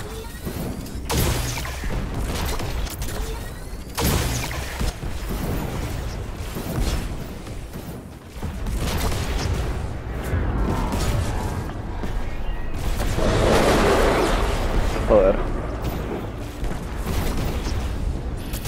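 Footsteps thud quickly on grass as a game character runs.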